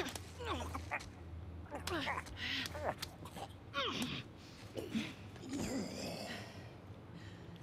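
A man chokes and gasps as he is strangled.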